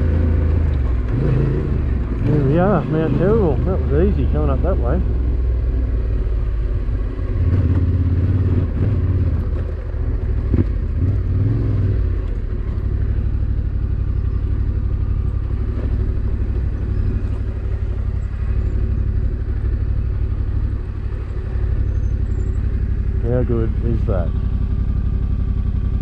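A motorcycle engine rumbles and revs while riding uphill.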